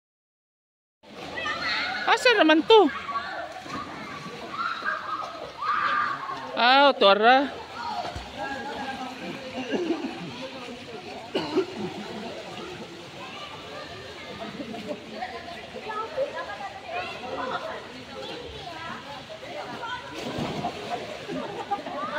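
Young people chatter and shout in an echoing pool.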